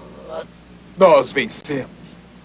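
A young man speaks briefly and firmly.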